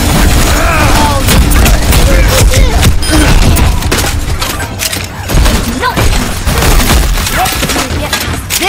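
A weapon fires rapid shots.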